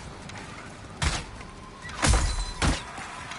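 Sword blows land with heavy impacts in a fight.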